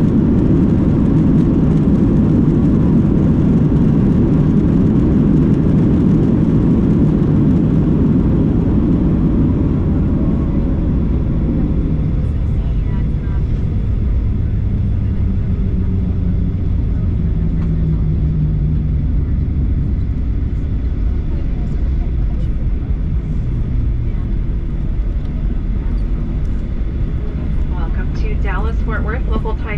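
Jet engines roar inside the cabin of a Boeing 737 as it slows on the runway after landing, then settle to a lower rumble.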